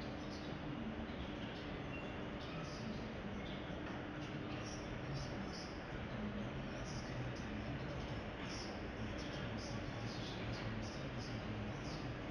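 An escalator hums and rattles steadily.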